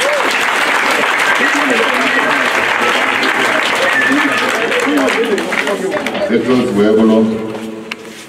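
A large outdoor crowd cheers and chatters loudly.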